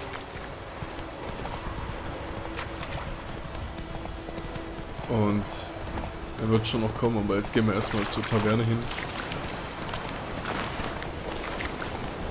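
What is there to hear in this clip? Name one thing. A horse gallops with steady hoofbeats on a dirt path.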